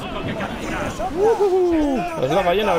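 A whale lets out long, wailing calls.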